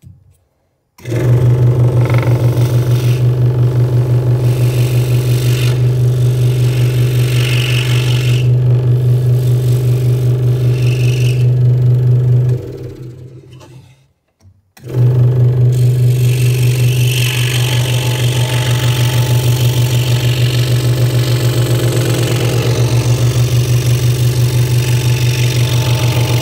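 A scroll saw hums and buzzes steadily as it cuts through thin wood.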